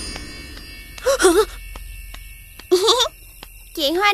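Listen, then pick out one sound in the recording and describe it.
A young girl speaks briefly with animation.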